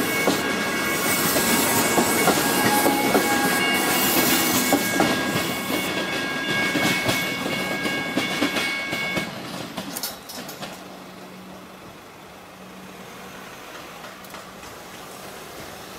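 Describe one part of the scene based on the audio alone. A train rattles and clatters past close by, then fades into the distance.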